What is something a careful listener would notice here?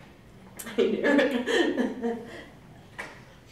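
A middle-aged woman laughs close to a microphone.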